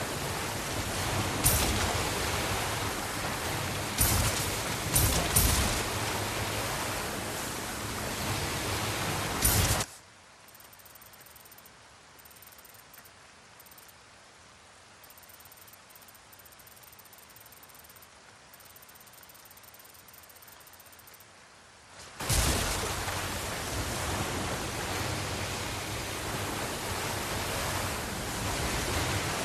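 A motorboat engine hums steadily.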